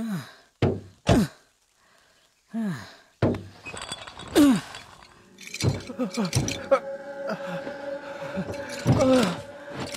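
A man groans and grunts with effort close by.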